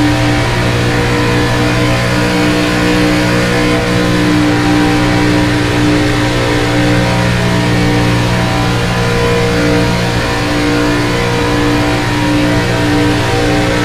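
Another race car engine drones close ahead.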